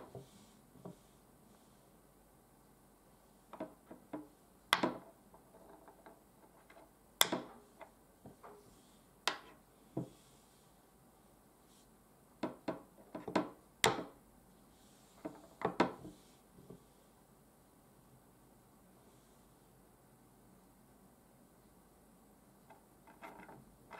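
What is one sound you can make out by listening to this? Wooden game pieces click and knock as they are moved across a wooden board.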